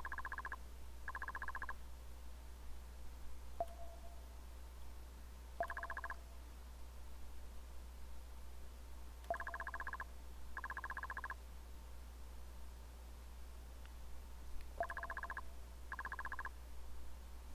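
Rapid soft beeps chatter in short bursts as text types out.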